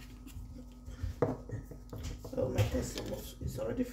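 A small jar knocks down onto a wooden board.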